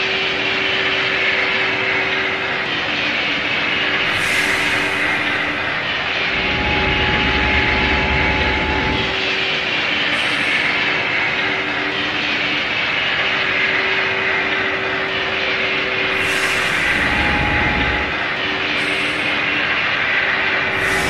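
A car drives fast with a steady roar of tyres and engine.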